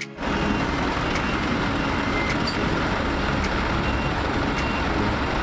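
Truck engines rumble and idle close by.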